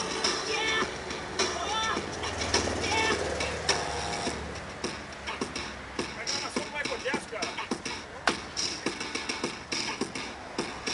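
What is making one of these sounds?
A man's shoes scuff and tap on pavement as he dances.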